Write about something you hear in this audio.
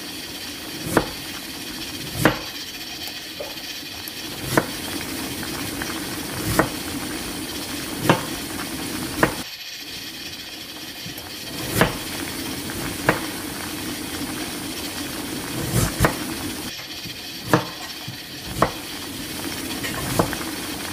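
Bubbles pop with soft sharp clicks now and then.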